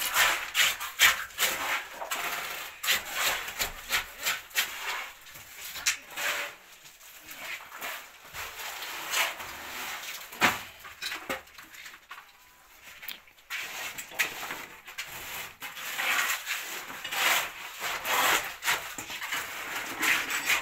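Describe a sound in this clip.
Hands scrape and knock against wood and concrete.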